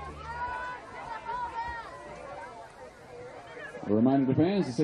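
Distant spectators call out and cheer outdoors.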